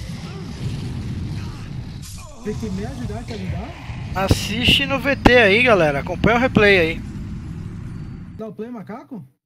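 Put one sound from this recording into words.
A huge dragon breathes fire with a deep, roaring rush.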